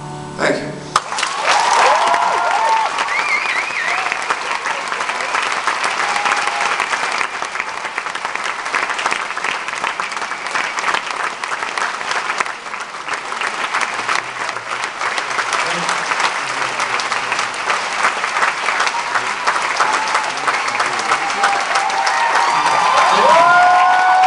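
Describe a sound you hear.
A large crowd claps and cheers loudly in an echoing hall.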